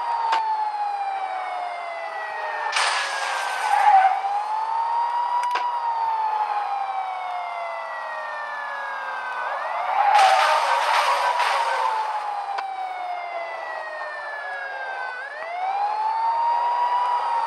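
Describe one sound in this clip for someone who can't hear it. A car engine revs up and shifts gears repeatedly.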